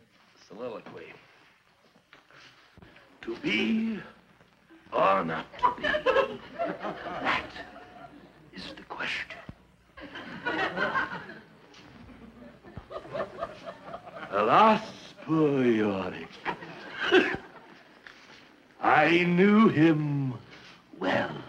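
A middle-aged man talks animatedly and theatrically, close by.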